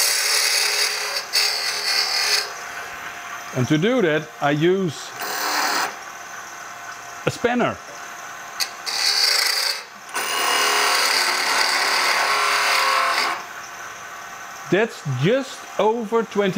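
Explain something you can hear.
A wood lathe spins with a steady hum.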